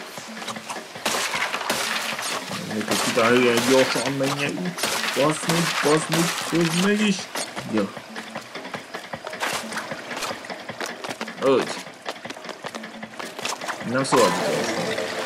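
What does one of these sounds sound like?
Water splashes under quick running footsteps.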